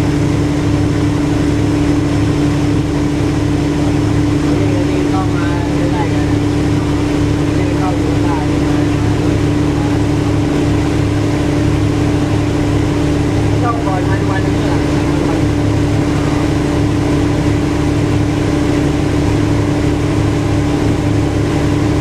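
Water laps gently against a riverbank.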